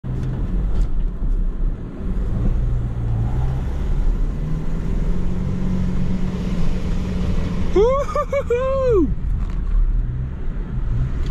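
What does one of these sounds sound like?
Car tyres crunch and bump over a rough dirt track.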